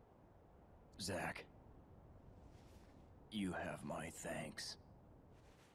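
A man speaks weakly and slowly, close by.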